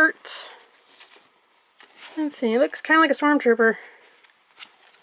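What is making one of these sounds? Fabric rustles as a shirt is handled.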